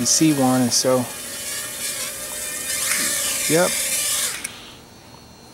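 The small motors of a toy-sized quadcopter whine at a high pitch as it flies.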